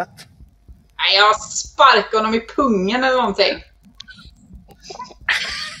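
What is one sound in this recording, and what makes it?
Men laugh loudly over an online call.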